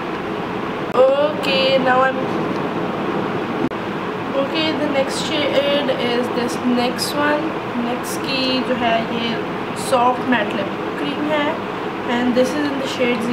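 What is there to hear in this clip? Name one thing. A young woman talks calmly and brightly, close to the microphone.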